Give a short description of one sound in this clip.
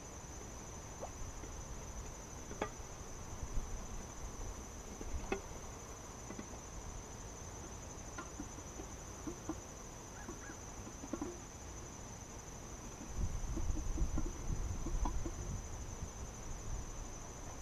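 Wooden hive frames knock and scrape.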